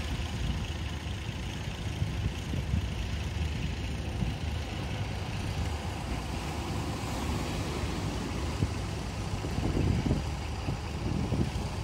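A boat engine rumbles offshore.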